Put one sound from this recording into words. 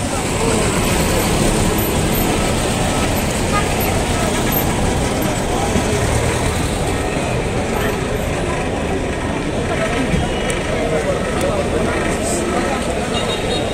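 A crowd of people chatters outdoors along a busy street.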